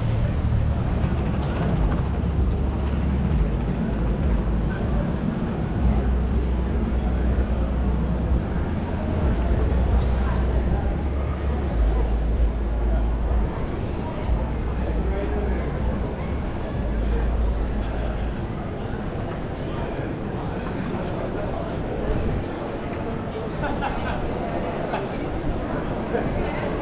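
A crowd of people chatters nearby.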